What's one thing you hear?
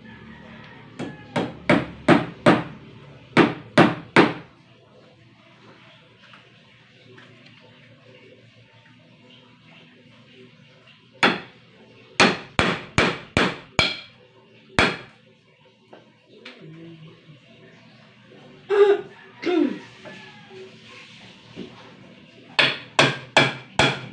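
A hammer strikes wood in quick bursts of sharp blows.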